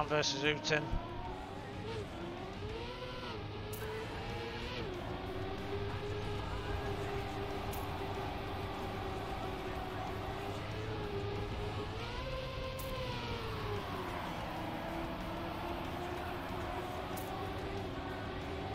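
A racing car engine whines steadily, rising and falling in pitch as it speeds along.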